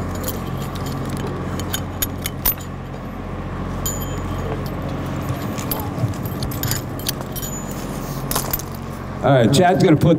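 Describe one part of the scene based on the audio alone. Metal harness buckles clink and click.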